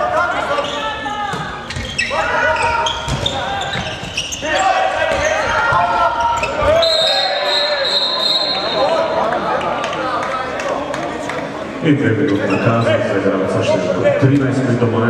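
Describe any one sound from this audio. Sports shoes squeak on a hall floor.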